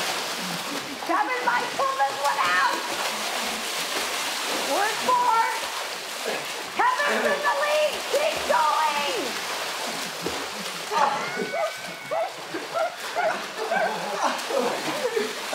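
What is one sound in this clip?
Young men laugh and shout with excitement.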